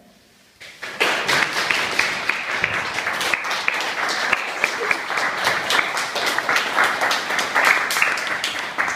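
A group of young people claps loudly.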